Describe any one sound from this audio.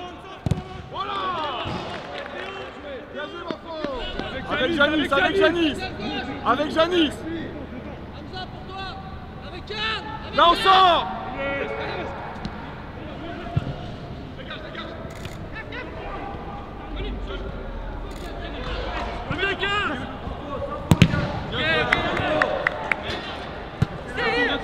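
Men shout to each other across an echoing, empty stadium.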